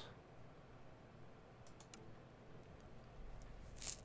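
A soft menu click sounds as a selection changes.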